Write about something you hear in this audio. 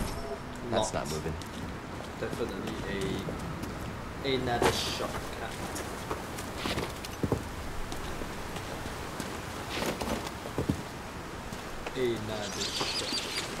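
Footsteps run over rocky ground.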